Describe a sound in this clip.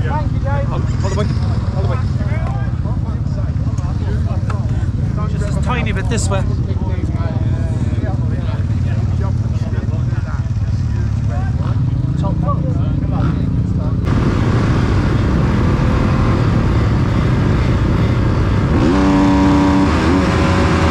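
A motorbike engine rumbles steadily close by.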